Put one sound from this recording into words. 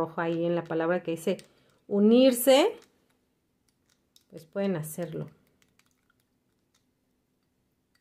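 A plastic spoon stirs liquid in a glass, softly tapping its sides.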